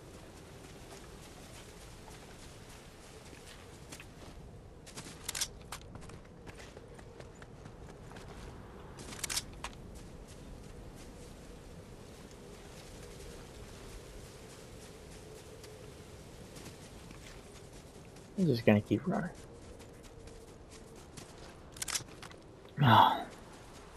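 Footsteps run quickly over grass and dirt.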